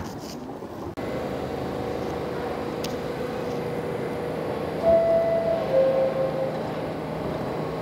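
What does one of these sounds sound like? A train's motor whines with a steady tone.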